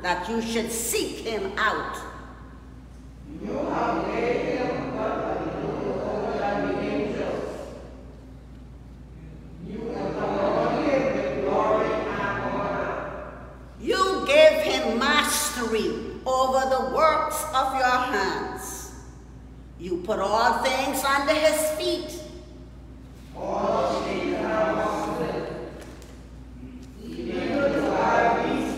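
An elderly woman reads aloud slowly and clearly, pausing between verses.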